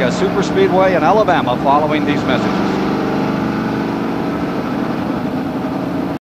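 A race car engine roars steadily.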